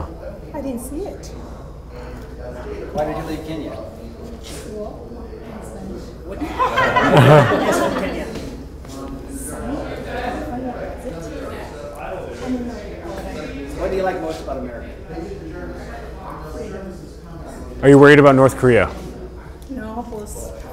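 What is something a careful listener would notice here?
Several adults talk and murmur together in a room with a slight echo.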